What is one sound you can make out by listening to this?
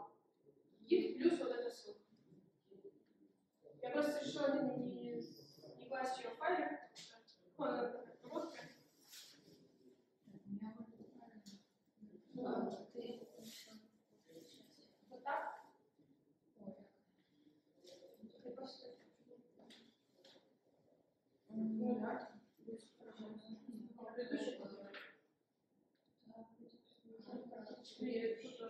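A young woman speaks calmly and clearly.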